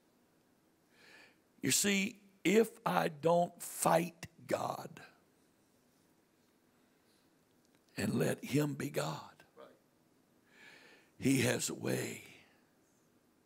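An older man speaks with animation through a microphone in a room with a slight echo, pausing between phrases.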